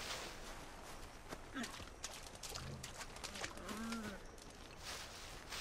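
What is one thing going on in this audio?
Footsteps rustle through dry grass.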